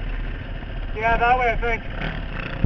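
A dirt bike engine revs sharply up and down.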